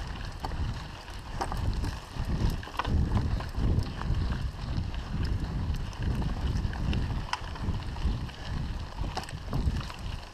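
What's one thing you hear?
A bicycle clicks and rattles over bumps.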